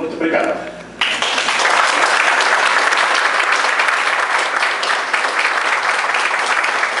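A crowd applauds loudly in a room.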